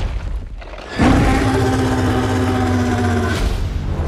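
A huge ape roars loudly and fiercely.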